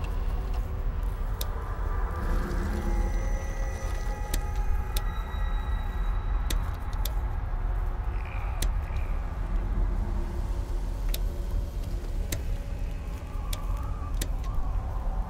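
Short interface clicks sound as menu choices change.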